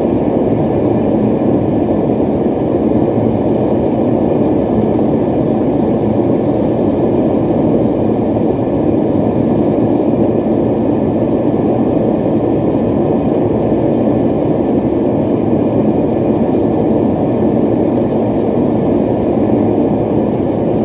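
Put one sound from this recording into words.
A gas forge burner roars steadily.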